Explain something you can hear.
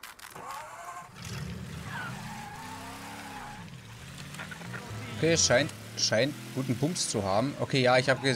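A car engine hums and revs as a car drives off.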